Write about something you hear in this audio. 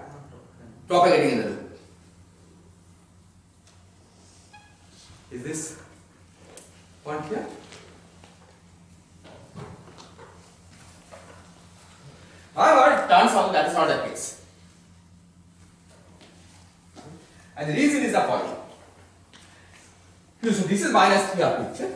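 A man lectures in a large echoing hall, speaking in short bursts with pauses.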